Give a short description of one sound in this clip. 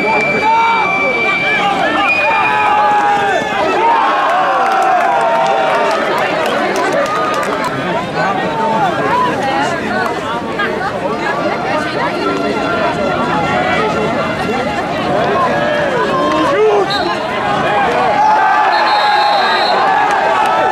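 A crowd of spectators chatters and cheers outdoors nearby.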